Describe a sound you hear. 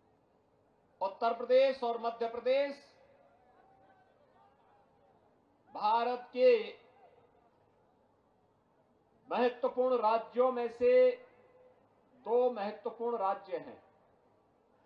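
A man speaks forcefully into a microphone, in short bursts with pauses, heard through loudspeakers.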